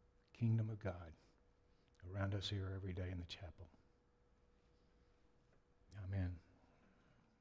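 An elderly man speaks calmly into a microphone, in short phrases with pauses.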